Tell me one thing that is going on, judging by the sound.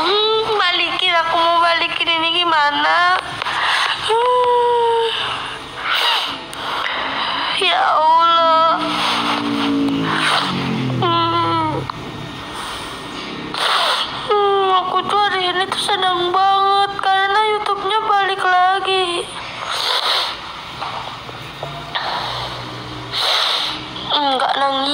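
A young woman speaks tearfully close to a phone microphone.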